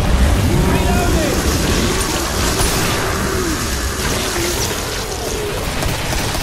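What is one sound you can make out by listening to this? A flamethrower roars steadily.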